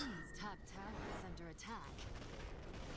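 Magic spells burst and crackle in quick succession.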